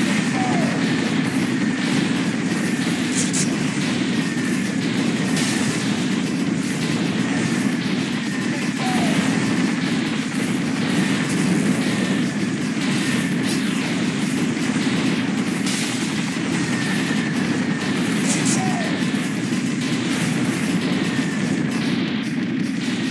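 Explosions boom again and again.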